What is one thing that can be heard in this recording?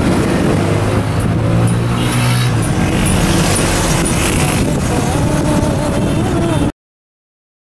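A vehicle engine hums steadily up close.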